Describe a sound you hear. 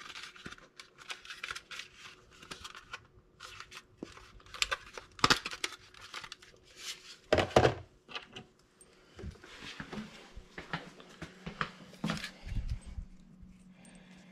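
Hands rustle and knock against a plastic device close by.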